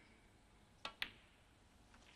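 Snooker balls clack together.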